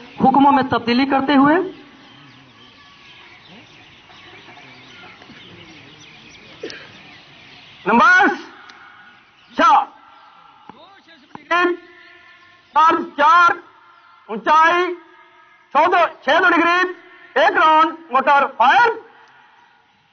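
A man shouts sharp drill commands in short bursts outdoors.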